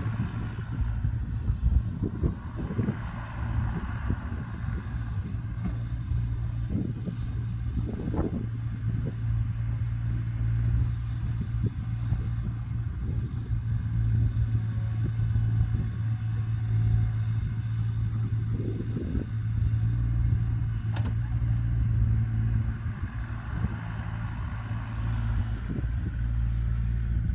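A small excavator's diesel engine rumbles steadily nearby.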